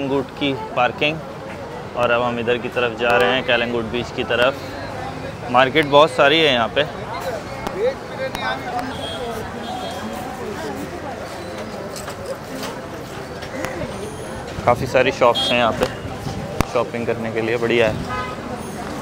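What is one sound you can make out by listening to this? Men and women talk nearby in a busy outdoor street.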